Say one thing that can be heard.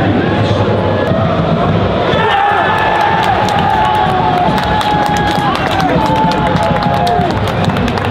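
Men on a team bench cheer and shout excitedly.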